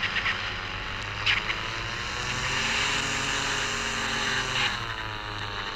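A car engine revs and speeds up.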